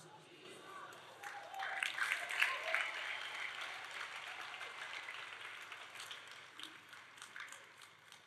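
A crowd murmurs and prays softly in the background.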